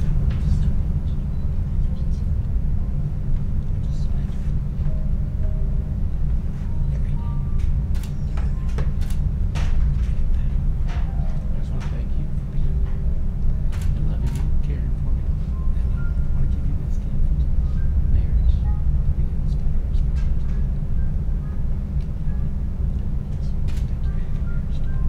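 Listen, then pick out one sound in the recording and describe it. A middle-aged man speaks softly and haltingly nearby.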